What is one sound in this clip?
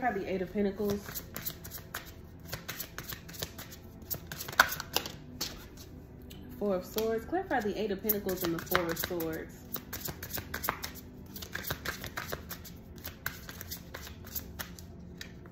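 Playing cards riffle and flick as they are shuffled by hand.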